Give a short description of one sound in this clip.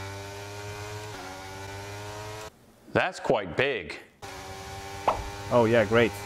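A racing car engine hums steadily at high revs.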